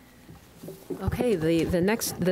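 A middle-aged woman begins speaking into a microphone, heard through loudspeakers.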